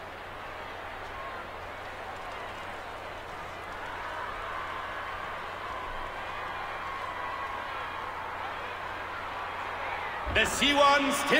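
A large crowd murmurs and cheers in a big open arena.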